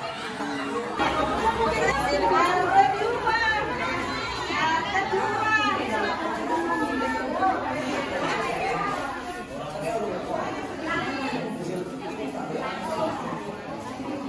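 A crowd of women chatters and laughs nearby.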